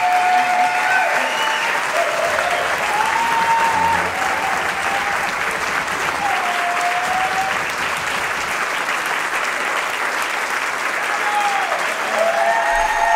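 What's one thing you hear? Shrill whistles rise from a crowd.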